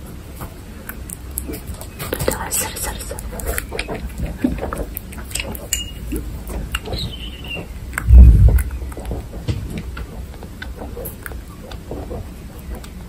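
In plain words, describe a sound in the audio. A guinea pig chews and licks at a syringe with small wet clicks.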